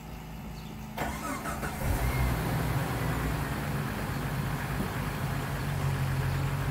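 An engine revs up and roars louder.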